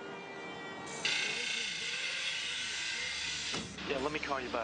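A grinder cuts metal with a loud hiss.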